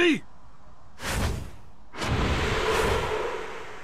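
Large wings flap with a rushing whoosh.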